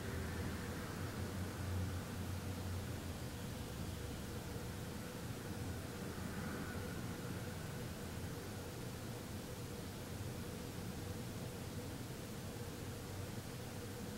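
A man hums a low, steady tone close by.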